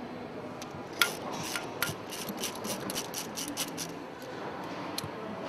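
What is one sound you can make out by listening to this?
A ratchet wrench clicks rapidly as it turns.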